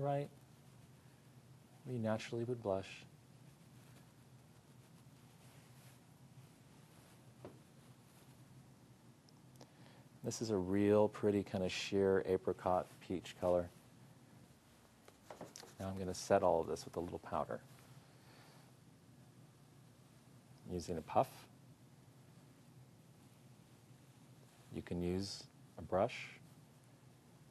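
A man talks calmly close by, in short bursts with pauses.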